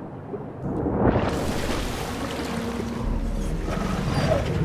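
A large sea creature bursts out of the water with a loud splash.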